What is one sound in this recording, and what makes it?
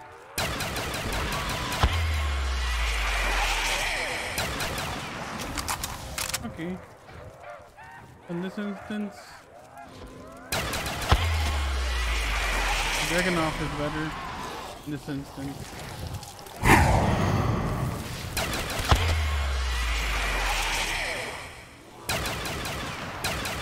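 A rifle fires repeated shots.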